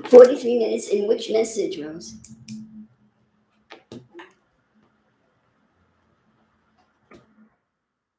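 A small plastic object clicks in an older woman's hands.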